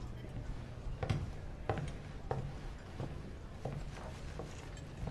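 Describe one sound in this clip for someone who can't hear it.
A knife and fork clink and scrape against a plate.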